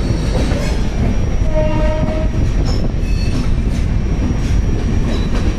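A passenger train rumbles and clatters past at speed, close by.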